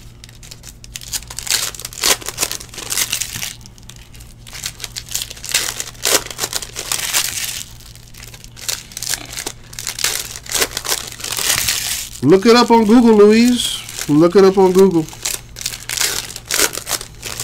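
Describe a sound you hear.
Foil card wrappers crinkle and rustle close by.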